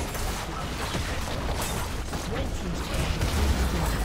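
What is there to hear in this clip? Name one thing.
A tower crumbles with a heavy crash.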